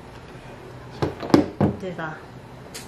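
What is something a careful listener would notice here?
A small plastic appliance knocks down onto a wooden table.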